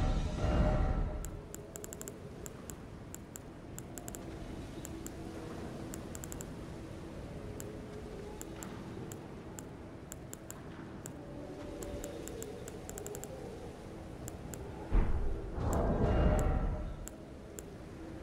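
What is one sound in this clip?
Short menu clicks tick quickly as selections change.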